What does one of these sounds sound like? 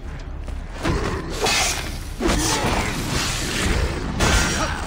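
Metal blades clash and ring in quick, sharp strikes.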